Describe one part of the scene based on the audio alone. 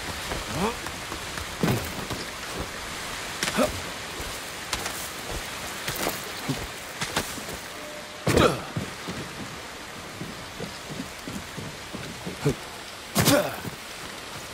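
Footsteps scrape and thud on stone and wooden roofing.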